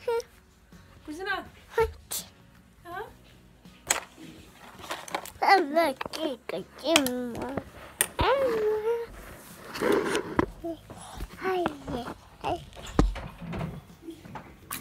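A young child babbles and talks in a high voice very close by.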